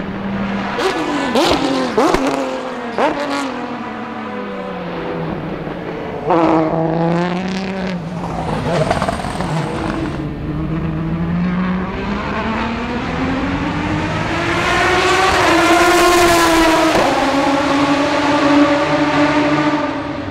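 Racing car engines roar and whine past, rising and falling in pitch as they shift gears.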